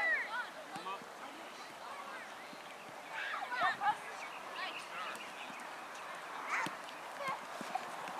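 Children shout and call out across an outdoor field.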